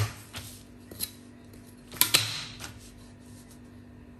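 A ruler slides and knocks against paper on a table.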